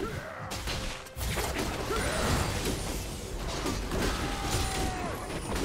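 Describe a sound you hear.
Game spell effects and hits crackle and thump in quick bursts.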